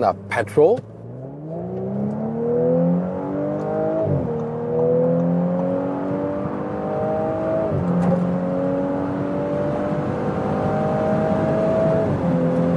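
A car engine revs hard as it accelerates, dropping in pitch at each gear change.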